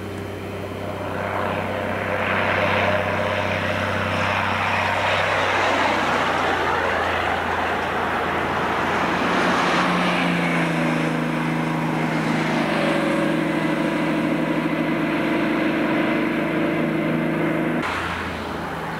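A vehicle engine drones steadily while driving along a road.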